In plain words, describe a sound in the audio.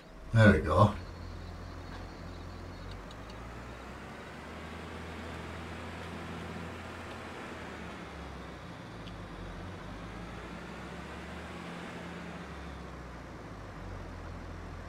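A heavy diesel engine idles and rumbles steadily.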